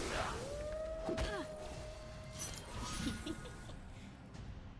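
Magical game effects whoosh and chime.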